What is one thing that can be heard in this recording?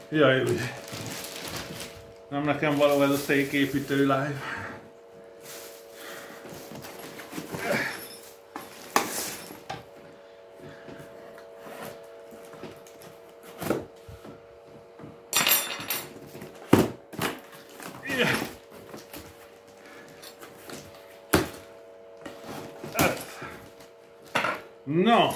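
Cardboard rustles and knocks as a man unpacks a box.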